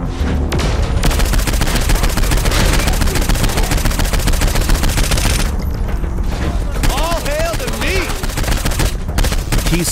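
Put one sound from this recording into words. Automatic gunfire rattles rapidly and steadily.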